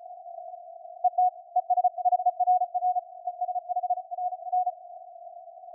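Morse code beeps quickly over the radio.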